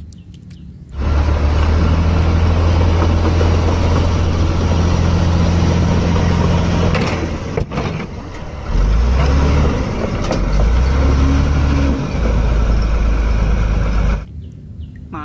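A bulldozer engine rumbles loudly and steadily.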